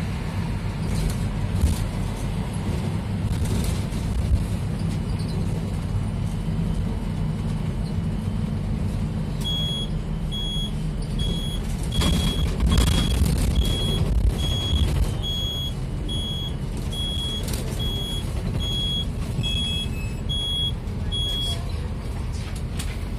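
Tyres roll along the road.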